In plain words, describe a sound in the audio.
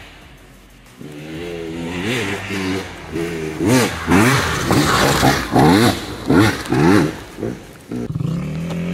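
A dirt bike engine revs hard and whines up and down close by.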